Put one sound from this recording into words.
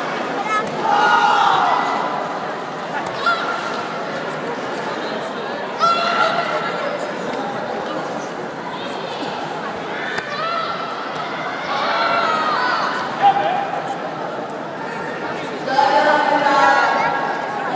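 Young women shout sharply as they strike.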